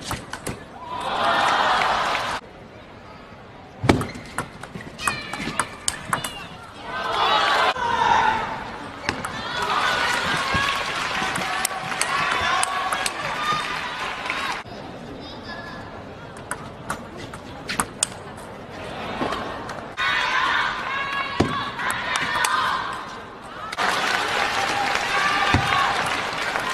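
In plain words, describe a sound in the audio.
A crowd cheers and applauds in a large hall.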